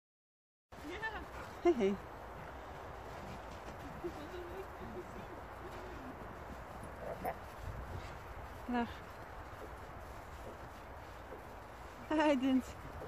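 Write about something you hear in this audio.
Dogs yelp and bark outdoors during play.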